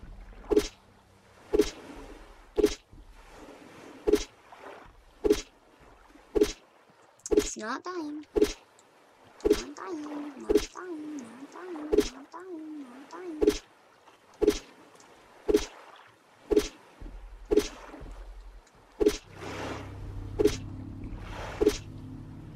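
Small waves lap gently at a sandy shore.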